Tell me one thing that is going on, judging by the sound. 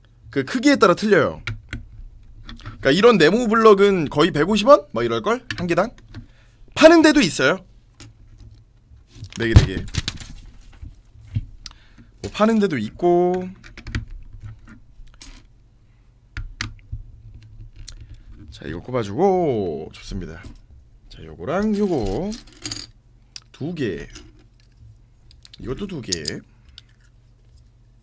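Plastic toy bricks click and rattle as they are handled.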